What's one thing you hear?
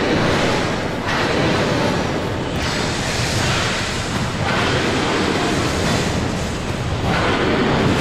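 Magic blasts whoosh and crackle.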